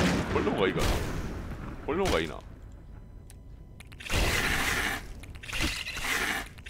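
Fireballs burst with a loud roar.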